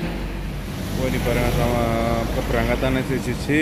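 A bus horn sounds loudly.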